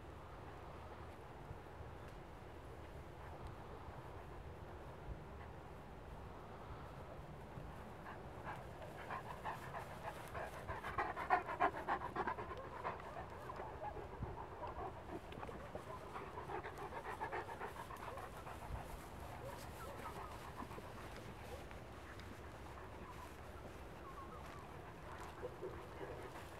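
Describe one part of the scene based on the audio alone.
Dogs push and rustle through dry grass and brush.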